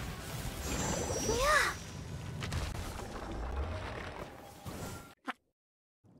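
Fiery blasts roar and crackle in a game battle.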